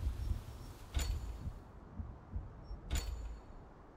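Short sharp menu clicks sound now and then.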